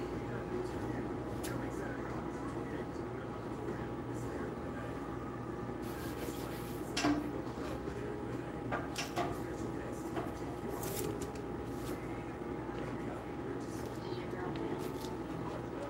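Fabric rustles and objects knock as garments are handled.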